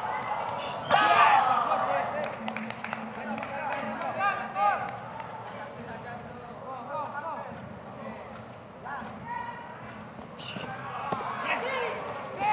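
Bare feet shuffle and thud on a padded mat.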